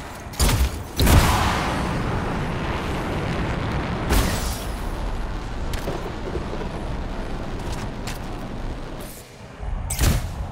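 Jet thrusters roar loudly.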